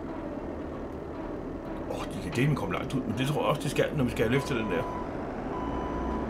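A loader's diesel engine idles with a low, steady rumble.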